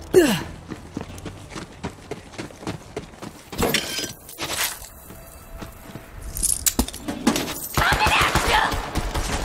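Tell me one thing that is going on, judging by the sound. Footsteps crunch steadily over dirt.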